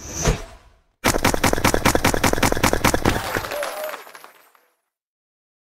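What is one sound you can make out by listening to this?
Cartoon fireworks crackle and pop in a quick burst.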